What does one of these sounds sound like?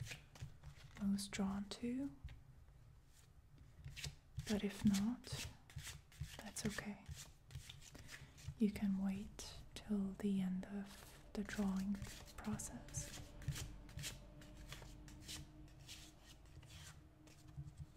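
Playing cards are shuffled, riffling and tapping softly.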